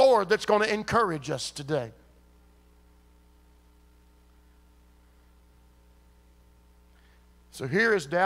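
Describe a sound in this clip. A man speaks with animation through a microphone, with pauses.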